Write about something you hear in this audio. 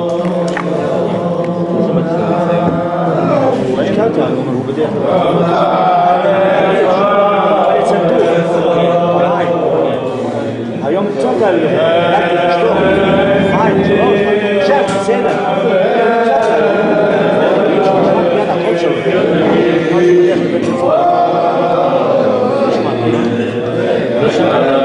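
An elderly man sings with animation close by.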